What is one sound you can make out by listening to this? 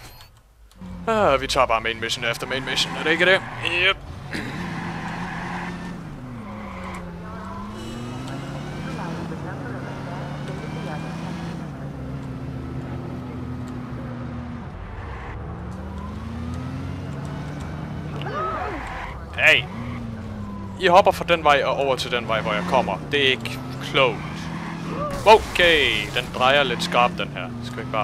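Car tyres screech on the road during sharp turns.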